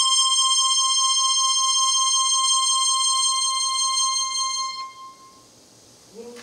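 A harmonica plays a sustained chord through loudspeakers.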